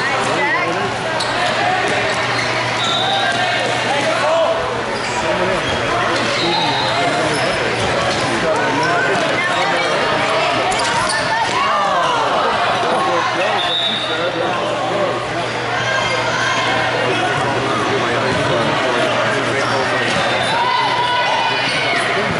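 Trainers squeak on a hard floor.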